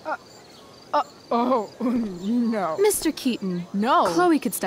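A young woman speaks persuasively, close by.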